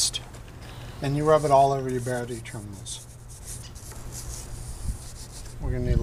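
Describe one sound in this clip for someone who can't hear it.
A small brush scrubs a metal battery terminal.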